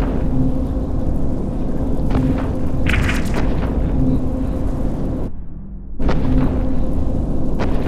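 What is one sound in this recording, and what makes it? A low engine rumble drones steadily.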